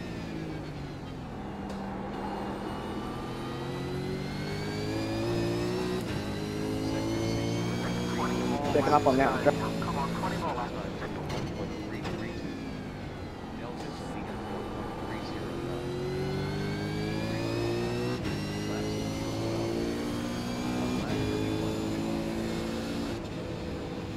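A race car engine roars steadily, rising and falling in pitch through the gears.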